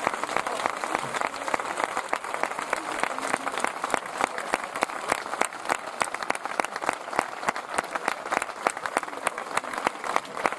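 An audience claps loudly and steadily in a large echoing hall.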